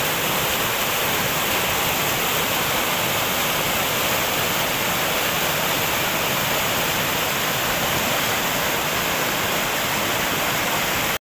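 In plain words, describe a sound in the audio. A fast mountain stream rushes and roars loudly over rocks, close by.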